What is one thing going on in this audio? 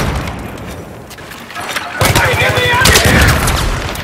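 A grenade explodes with a loud boom.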